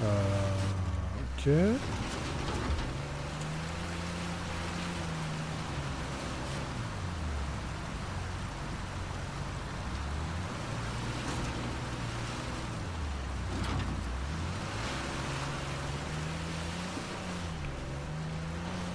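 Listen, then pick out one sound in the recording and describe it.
A car engine hums and revs as it drives through water.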